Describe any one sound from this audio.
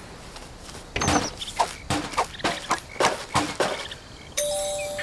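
Plastic and metal clatter in quick knocks.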